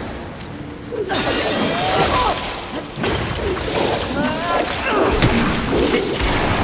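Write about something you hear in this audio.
Blades slash and clang against armor in rapid strikes.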